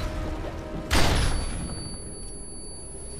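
A stun grenade bangs loudly close by.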